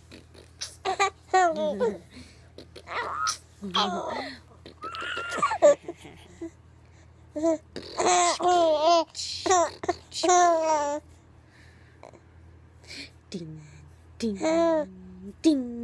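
A baby giggles and squeals with laughter close by.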